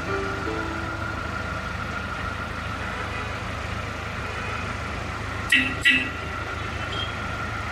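A small road train's engine hums steadily as it rolls past on the street.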